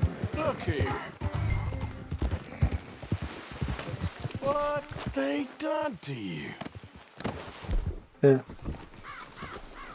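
A horse's hooves clop on a dirt path.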